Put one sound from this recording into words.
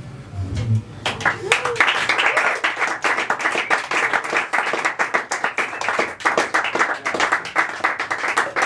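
An audience applauds with claps and cheers.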